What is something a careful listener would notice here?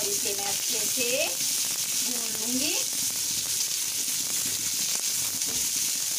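A spatula stirs and scrapes against a pan.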